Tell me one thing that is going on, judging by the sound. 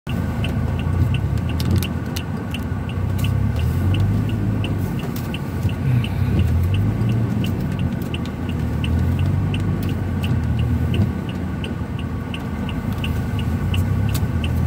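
A car engine hums low and steady while driving slowly.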